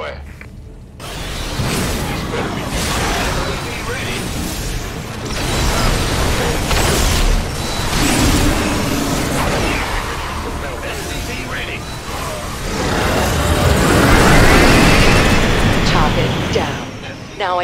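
Rapid gunfire and laser blasts crackle in a loud battle.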